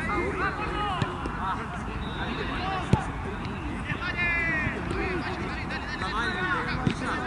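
A group of young men talk and call out to each other at a distance outdoors.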